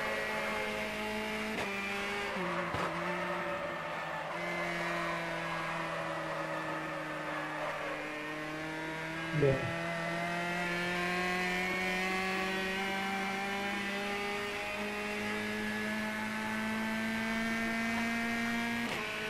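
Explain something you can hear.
A racing car engine roars steadily, its pitch shifting as the gears change.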